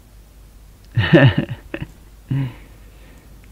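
A young man laughs briefly.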